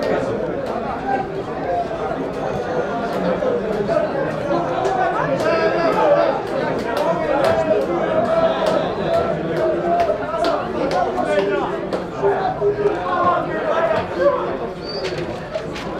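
Young men shout to each other outdoors on an open field.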